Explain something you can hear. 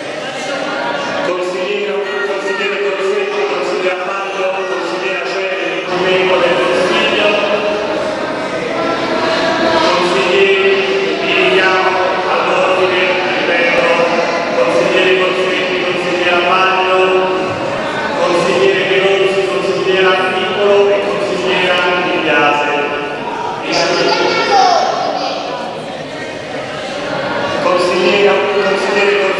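A crowd of men and women chant loudly together in a large echoing hall.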